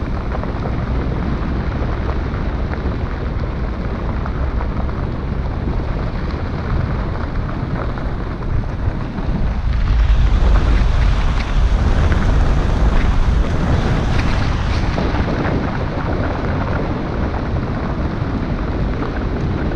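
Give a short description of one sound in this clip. Tyres crunch steadily over gravel.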